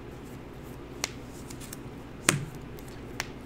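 Playing cards slide and tap softly on a table.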